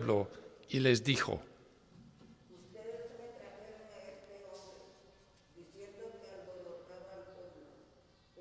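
A woman reads aloud through a microphone in an echoing room.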